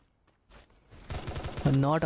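A rifle fires a shot.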